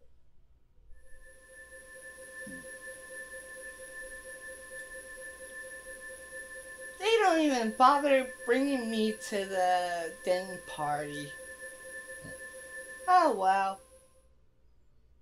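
A shimmering magical tone hums steadily and then fades.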